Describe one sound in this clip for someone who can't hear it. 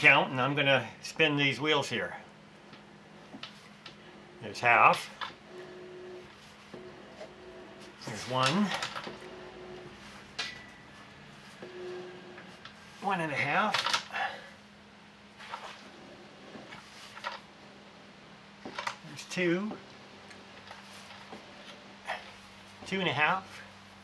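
A steering shaft creaks and squeals in short bursts as it turns back and forth.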